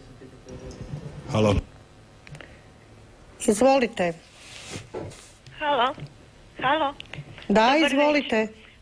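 A woman speaks slowly and emphatically into a microphone, with pauses between phrases.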